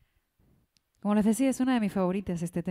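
A woman sings through a microphone with a clear, held voice.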